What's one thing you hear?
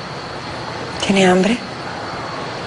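A woman speaks tensely at close range.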